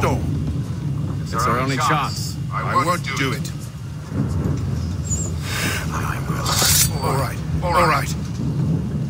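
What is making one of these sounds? A second man answers calmly.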